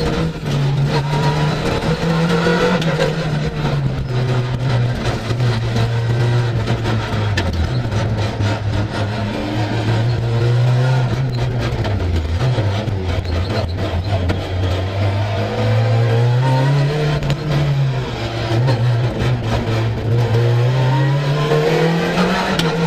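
A sequential gearbox clunks with each shift.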